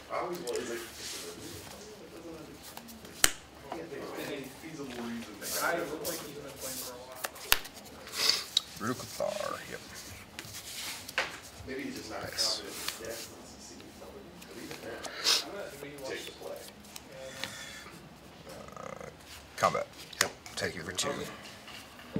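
Playing cards slap and slide on a cloth mat.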